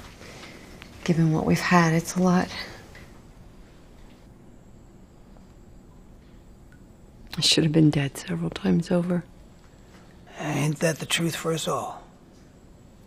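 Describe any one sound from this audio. A middle-aged woman speaks calmly and softly nearby.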